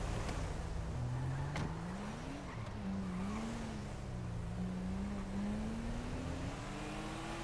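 A car engine hums and revs as the car pulls away, rising in pitch.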